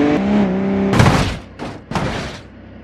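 A loud crash rings out as two trains collide.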